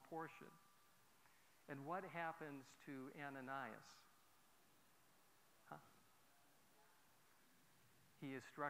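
A man speaks with animation in an echoing hall, pausing between phrases.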